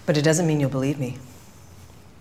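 A young woman speaks up close in a questioning tone.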